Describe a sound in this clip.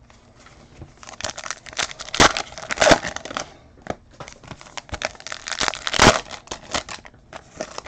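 Foil card wrappers crinkle and rustle as hands tear them open.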